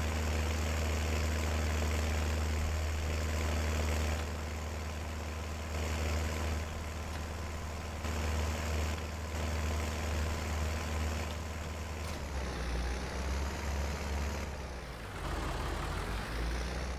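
A tractor engine rumbles steadily at low speed.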